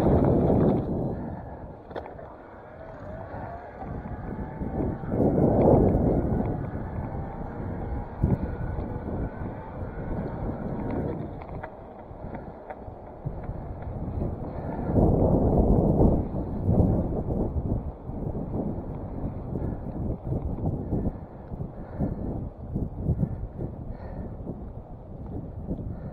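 Wind rushes past a bicycle as it speeds along a road.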